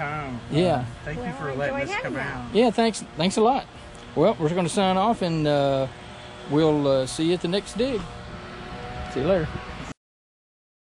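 An older man talks with animation, close by.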